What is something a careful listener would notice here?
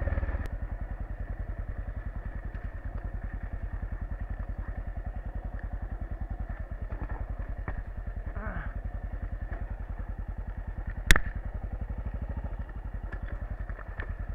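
Tyres crunch and rattle over loose stones.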